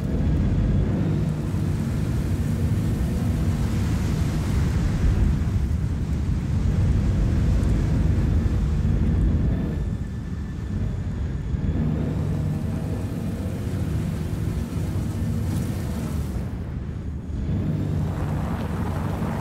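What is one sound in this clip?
A heavy vehicle's engine rumbles steadily as it drives over rough ground.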